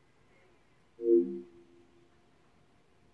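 A game console plays a short, low startup chime.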